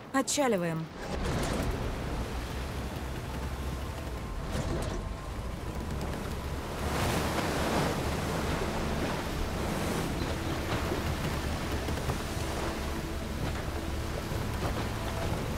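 A boat engine rumbles steadily as the boat speeds over water.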